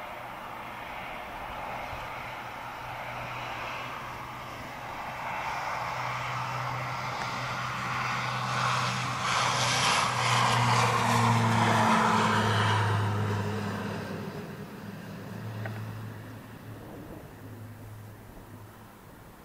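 A propeller plane's engines roar loudly as it speeds down the runway, swelling as it passes close by and fading as it climbs away.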